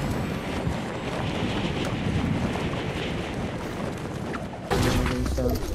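Wind rushes steadily past during a glide.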